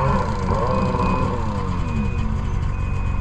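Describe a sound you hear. A snowmobile engine revs up briefly and settles back down.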